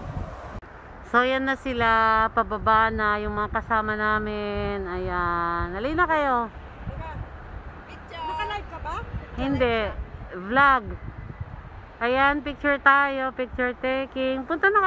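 A young woman sings loudly close by.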